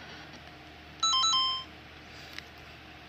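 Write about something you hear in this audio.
A handheld game console plays a short electronic chime.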